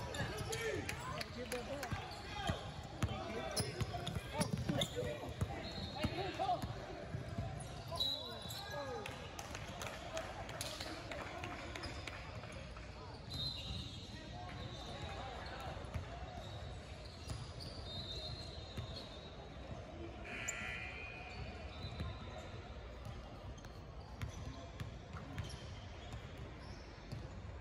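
A basketball bounces on the court with echoing thumps.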